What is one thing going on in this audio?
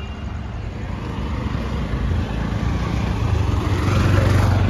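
An auto rickshaw engine putters close by and grows louder.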